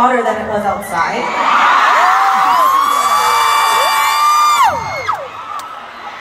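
A large crowd screams and cheers.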